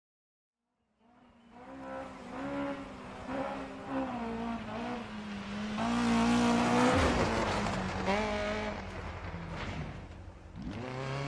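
A rally car engine roars and revs as the car approaches and speeds past.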